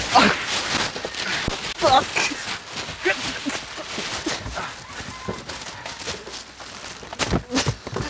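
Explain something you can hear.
Men scuffle and thump against a car.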